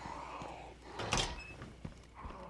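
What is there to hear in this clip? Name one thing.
A door creaks and bangs open.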